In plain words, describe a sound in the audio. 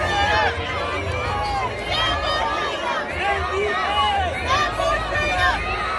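A crowd of protesters chants loudly together in a large echoing arena.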